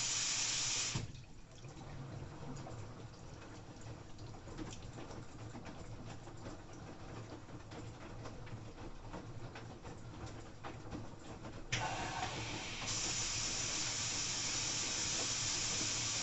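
Laundry tumbles and thumps softly inside a turning washing machine drum.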